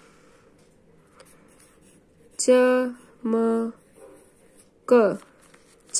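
A pencil scratches softly on paper as it writes.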